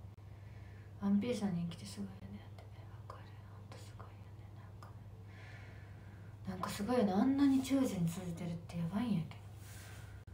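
A young woman speaks close to a laptop microphone, in short bursts.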